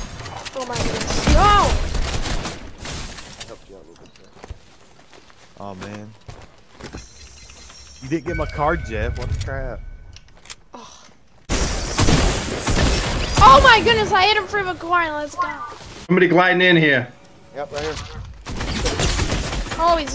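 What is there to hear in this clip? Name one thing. Guns fire in quick bursts of sharp shots.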